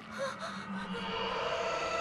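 A young girl gasps softly.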